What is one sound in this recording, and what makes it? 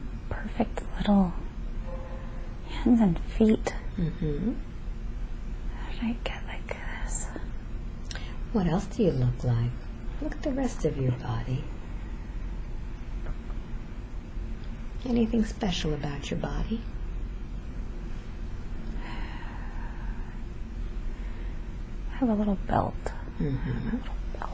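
A young woman snores loudly close by.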